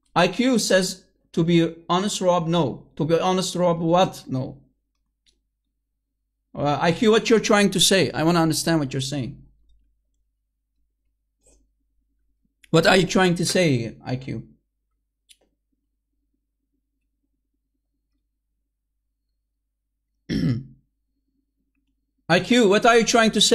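A man speaks calmly over an online call, in bursts separated by pauses.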